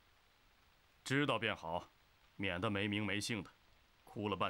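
A second man speaks close by.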